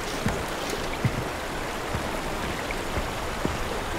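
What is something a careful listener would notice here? A bowstring creaks as a bow is drawn.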